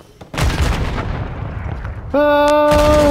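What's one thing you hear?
An explosion booms nearby and rumbles away.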